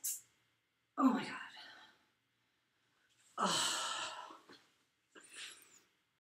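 A woman speaks close by in short bursts, with animation.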